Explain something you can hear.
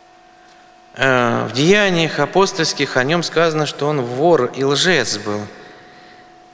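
A man chants in a deep voice through a microphone, in an echoing hall.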